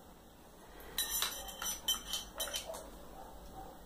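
Plastic toy dishes clink together.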